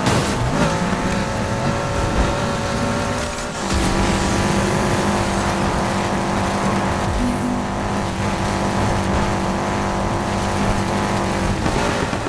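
Tyres screech and skid on the road surface.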